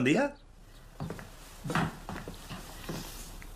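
A young woman speaks quietly close by.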